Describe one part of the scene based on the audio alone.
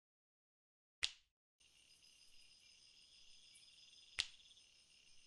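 A game menu button clicks.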